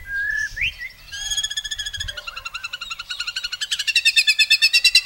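A songbird whistles a clear note, then sings a fast, rising, chattering trill close by.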